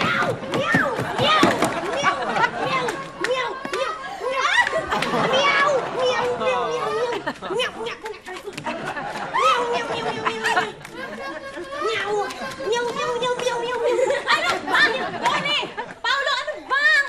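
Several people talk and shout excitedly over one another.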